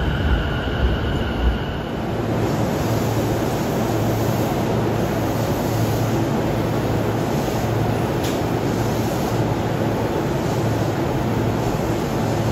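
A commuter train hums steadily while standing at a platform.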